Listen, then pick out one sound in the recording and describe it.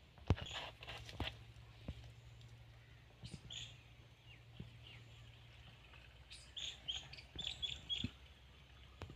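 Liquid splashes as it pours into a plastic tank.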